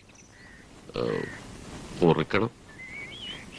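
An elderly man speaks briefly in a low voice nearby.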